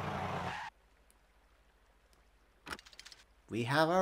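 A bus door slides open.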